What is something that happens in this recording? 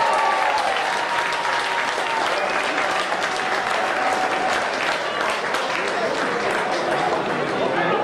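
A crowd cheers and murmurs outdoors.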